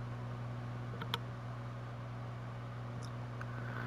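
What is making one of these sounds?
A game menu beeps briefly.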